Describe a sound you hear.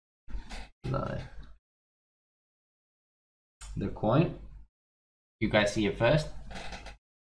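A man talks with animation close to a microphone, in short bursts with silent pauses.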